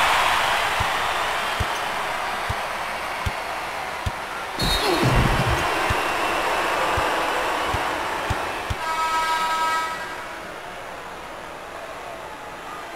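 A crowd roars in a large arena and quiets down.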